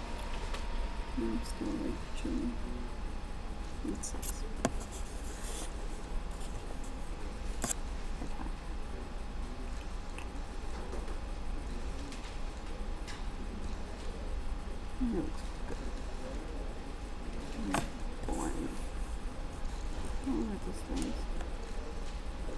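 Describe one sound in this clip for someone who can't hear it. A woman speaks quietly and softly close by.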